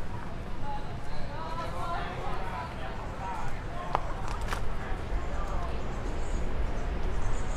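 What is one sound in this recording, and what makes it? Two men talk calmly close by.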